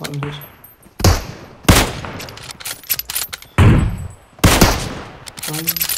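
Loud gunshots boom and echo.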